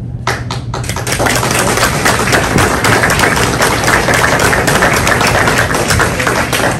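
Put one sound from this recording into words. A group of people applaud.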